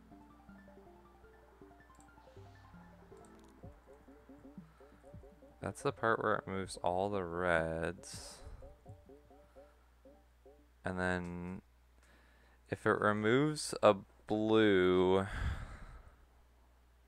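Cheerful electronic game tones beep and warble.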